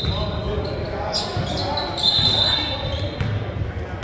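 Young men call out across the gym.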